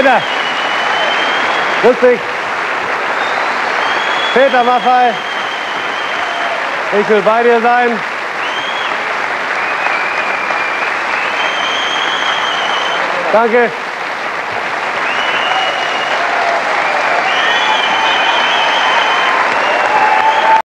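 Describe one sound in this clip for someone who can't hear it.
A large crowd applauds and cheers loudly in a big echoing hall.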